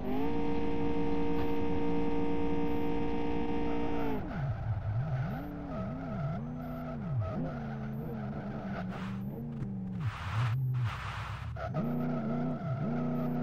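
A car engine roars at high revs, then rises and falls as the car drifts.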